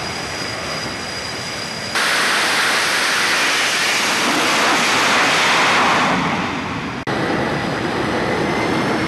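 A jet engine roars loudly as a fighter jet launches.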